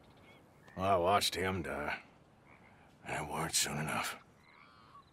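A man speaks slowly in a low voice, close by.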